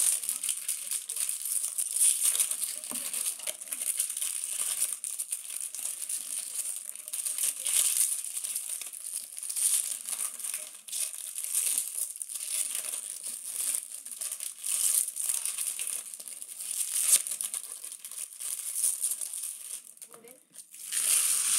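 Foil wrappers crinkle and rustle loudly close by.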